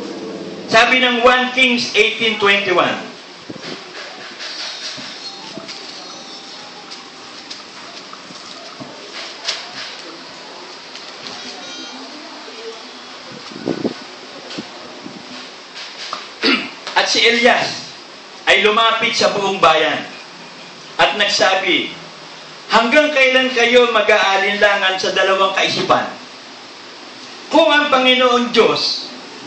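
A middle-aged man sings into a microphone, close and amplified, in short phrases with pauses.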